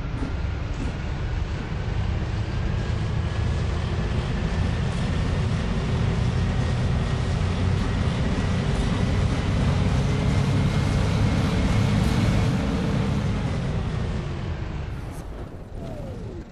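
A bus engine hums steadily as the bus drives along, then fades.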